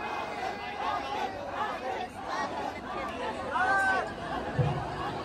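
A large crowd cheers and chatters loudly outdoors.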